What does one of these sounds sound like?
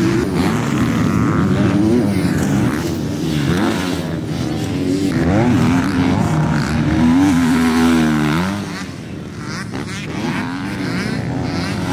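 Dirt bike engines roar and rev up and down loudly.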